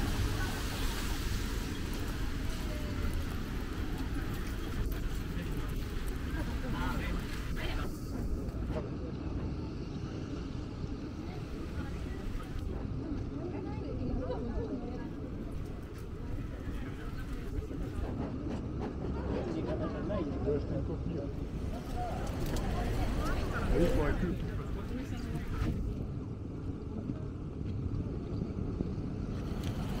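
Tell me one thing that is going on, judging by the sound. Footsteps shuffle on wet pavement outdoors.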